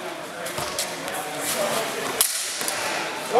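Steel swords clash sharply.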